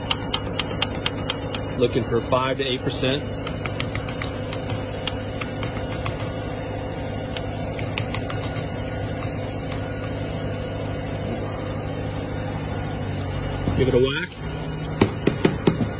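A metal pump clicks and knocks as it is worked by hand.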